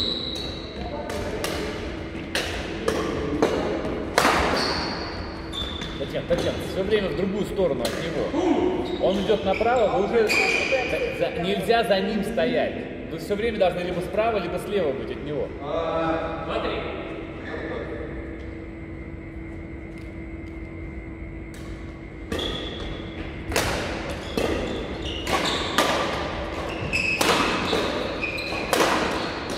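Rackets strike a shuttlecock in quick rallies in a large echoing hall.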